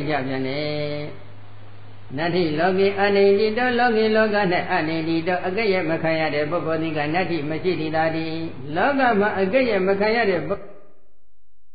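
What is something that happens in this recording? A man chants in a steady voice.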